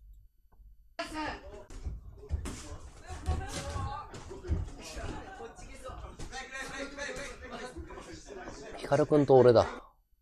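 Boxing gloves thud against each other in quick blows.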